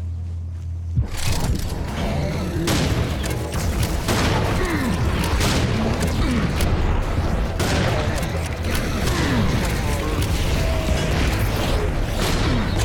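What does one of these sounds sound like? Shotgun blasts boom repeatedly.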